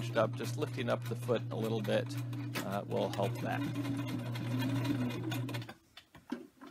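A sewing machine whirs steadily as it stitches.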